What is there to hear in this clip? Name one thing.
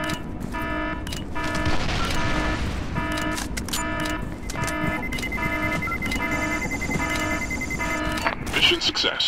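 A bomb device beeps in a steady rapid rhythm.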